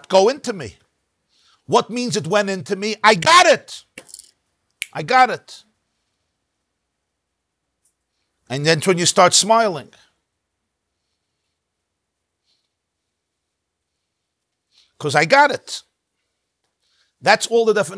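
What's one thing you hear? A middle-aged man speaks with animation into a close microphone, pausing between phrases.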